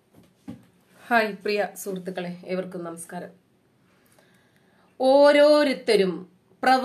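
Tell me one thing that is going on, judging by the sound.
A woman speaks calmly and close to the microphone.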